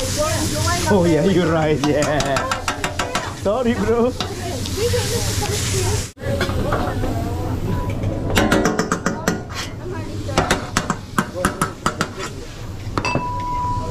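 Metal spatulas clatter and scrape on a griddle.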